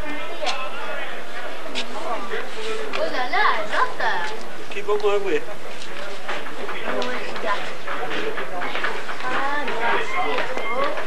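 Men on a rugby pitch shout calls to each other outdoors, at a distance.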